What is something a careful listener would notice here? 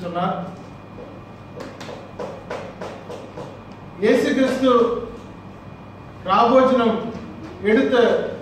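A man speaks steadily in a room with some echo, with pauses between phrases.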